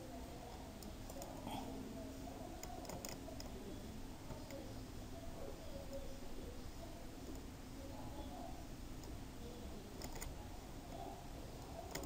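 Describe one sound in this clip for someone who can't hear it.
A pickaxe chips repeatedly at stone blocks.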